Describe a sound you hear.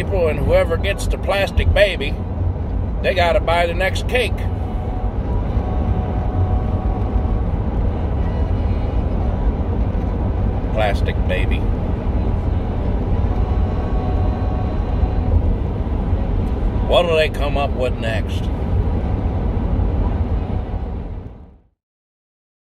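A car engine rumbles low and steady inside the cabin.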